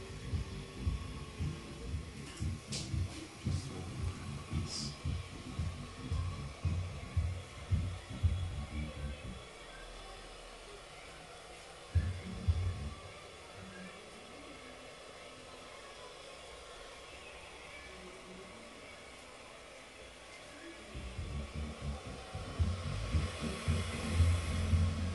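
A razor scrapes softly across a lathered face.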